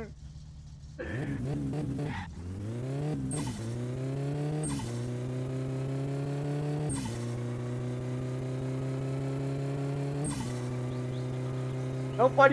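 A car engine accelerates hard, its pitch climbing and dropping at each gear change.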